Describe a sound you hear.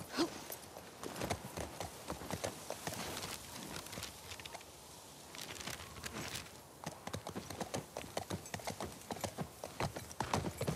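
Horse hooves thud rapidly on soft ground at a gallop.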